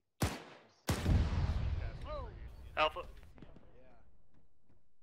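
An explosion booms in the distance and rumbles away.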